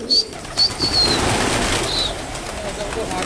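Pigeon wings flap in a quick burst.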